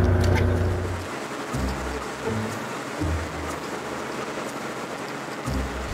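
Waves splash against a moving boat's hull.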